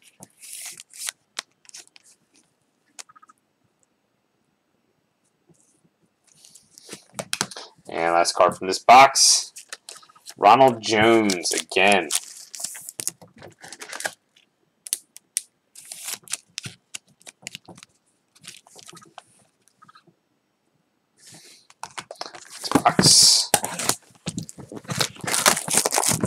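Plastic card holders click and rustle as hands handle them.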